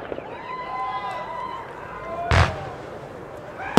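Fireworks whistle as they rise into the sky.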